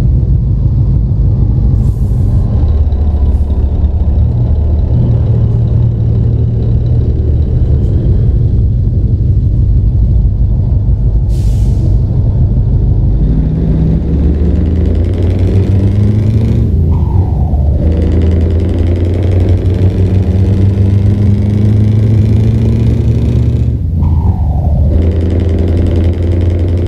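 A truck engine drones steadily and rises in pitch as it speeds up.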